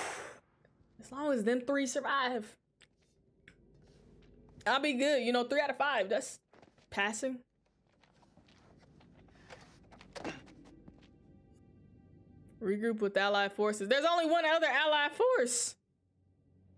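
A young woman talks with animation into a close microphone, in short bursts.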